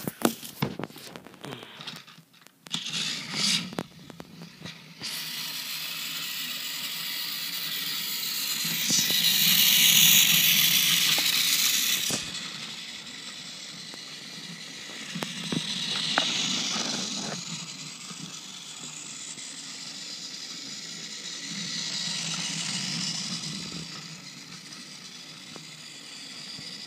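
A toy train's motor whirs steadily, growing louder as it passes close by.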